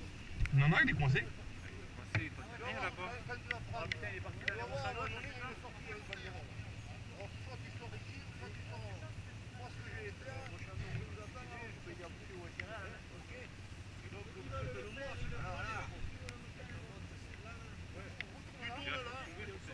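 Several men talk and call out nearby, outdoors.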